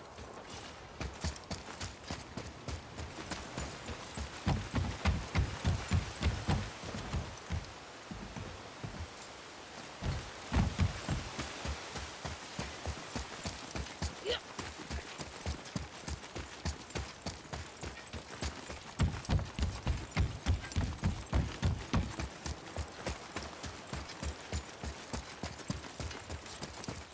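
Heavy footsteps run quickly over grass and stone.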